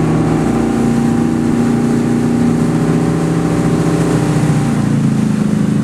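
Water sprays and hisses under a wakeboard cutting across a wake.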